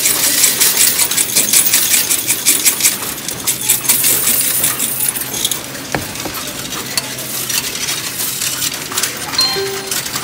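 Coins clatter and jingle as they are poured into a coin machine.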